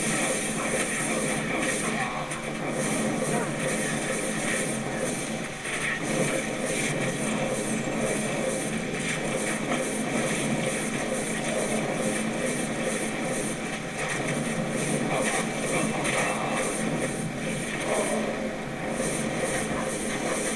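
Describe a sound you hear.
Rapid fiery spell blasts crackle and burst over and over.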